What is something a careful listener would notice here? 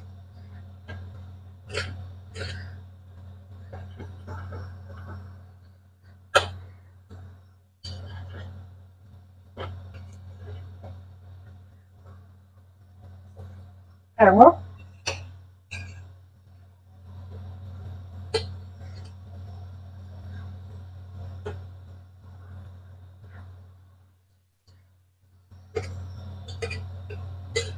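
A metal spoon clinks against a steel pot.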